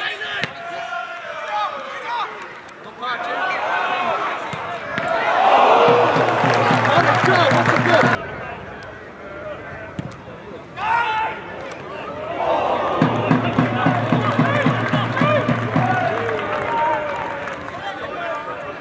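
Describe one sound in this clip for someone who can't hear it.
Players shout to each other across an open pitch.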